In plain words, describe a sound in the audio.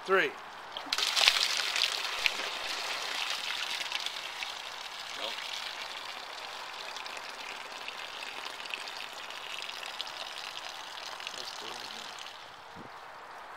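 Water gushes out and splashes onto grass.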